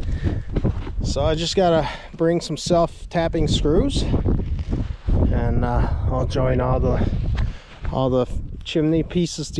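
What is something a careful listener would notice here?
A middle-aged man talks calmly and close up into a body-worn microphone.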